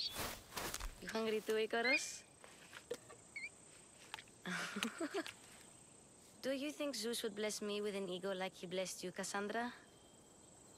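A child speaks gently and close by.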